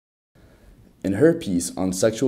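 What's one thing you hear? A young man speaks calmly and clearly, close to a microphone.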